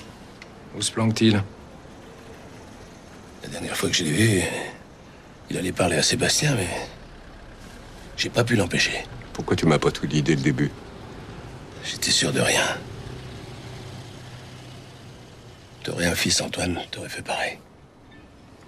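A middle-aged man speaks in short, strained bursts, close by.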